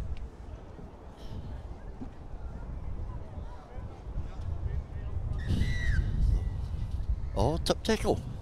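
Wind rumbles across an open outdoor field.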